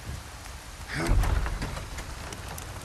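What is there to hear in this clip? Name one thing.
A heavy wooden door creaks and bangs open.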